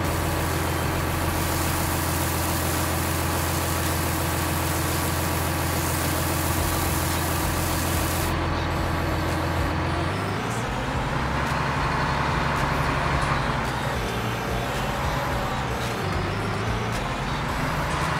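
A diesel engine rumbles steadily.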